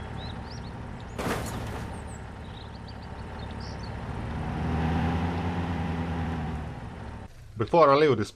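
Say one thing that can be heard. A truck engine rumbles steadily as the vehicle drives.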